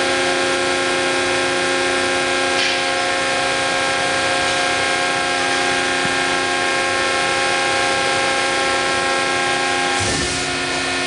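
A large hydraulic press hums loudly and steadily.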